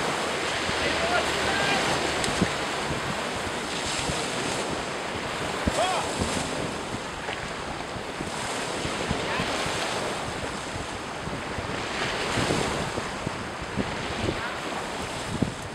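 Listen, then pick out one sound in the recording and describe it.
Small waves break and wash onto a pebble shore.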